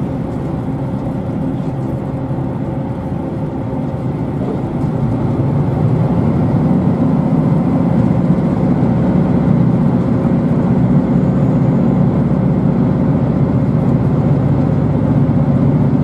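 A train rumbles steadily along the tracks, growing louder.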